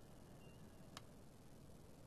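A soft interface click sounds once.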